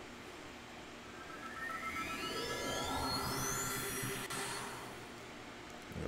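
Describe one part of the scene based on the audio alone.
A shimmering magical whoosh rises steadily in pitch.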